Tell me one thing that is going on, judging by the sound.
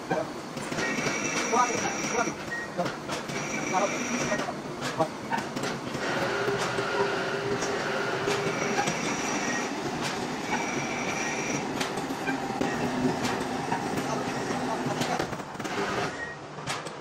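Machinery hums and clatters steadily.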